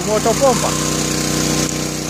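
Water gushes from a hose onto the ground.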